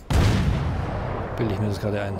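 A deck gun fires with a loud boom that rumbles away.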